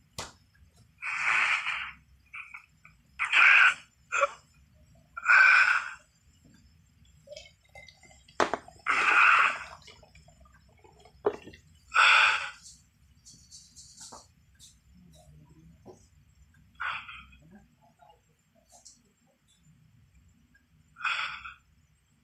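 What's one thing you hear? A man breathes in sharp, heavy gasps close by.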